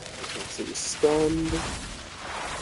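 A lightning spell crackles and zaps.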